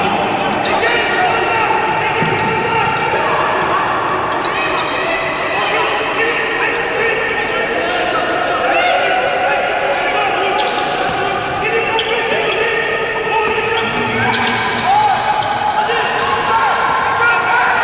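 A basketball bounces on a hard wooden court.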